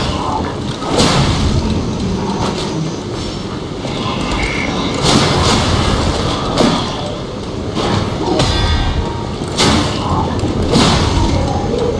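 Heavy blows strike with sharp, ringing impacts.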